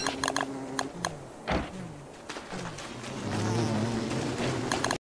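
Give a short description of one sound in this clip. A game character's footsteps patter across grass.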